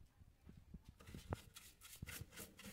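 A brush sweeps and scratches across a window sill.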